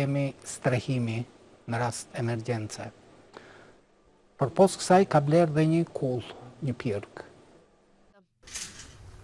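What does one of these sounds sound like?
A middle-aged man speaks calmly and clearly into a microphone.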